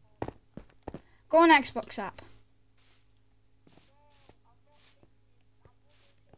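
Footsteps crunch on stone and grass.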